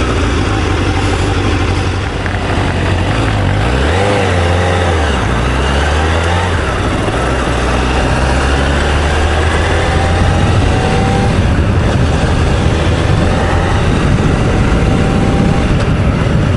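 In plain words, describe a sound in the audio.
A motorcycle engine hums and revs as it pulls away.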